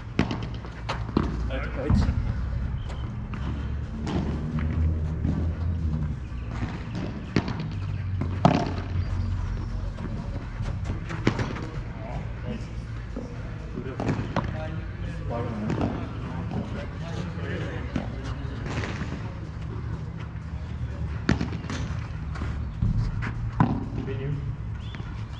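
Padel paddles strike a ball with sharp pops, back and forth.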